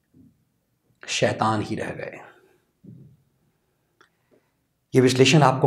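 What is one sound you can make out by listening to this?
A man speaks clearly and emphatically into a close microphone, in short bursts with pauses.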